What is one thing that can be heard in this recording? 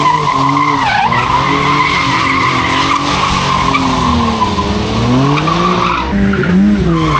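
Tyres squeal loudly on tarmac.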